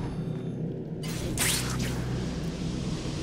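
A sudden whoosh rushes past.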